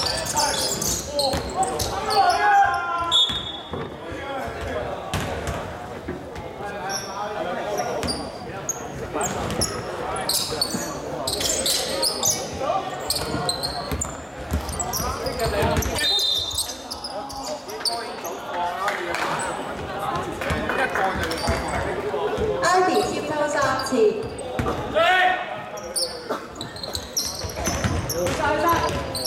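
Young men shout to each other in an echoing hall.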